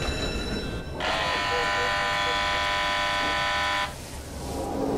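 A ship's engine telegraph rings steadily.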